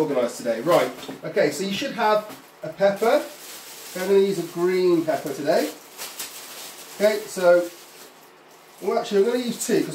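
A man crinkles a plastic wrapper.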